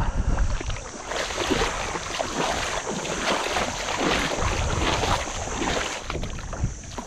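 A hooked fish splashes at the water's surface.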